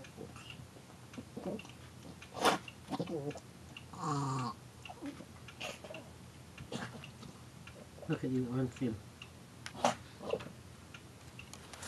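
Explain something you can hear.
A raccoon chews food on grass.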